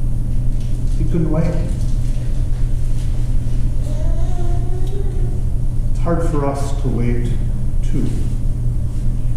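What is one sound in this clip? A man speaks calmly at a distance in an echoing room.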